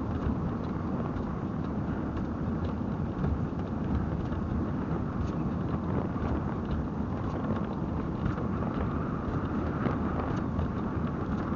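A vehicle's engine drones steadily.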